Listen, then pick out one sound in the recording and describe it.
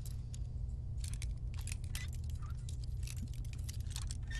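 A lock pick scrapes and clicks inside a metal lock.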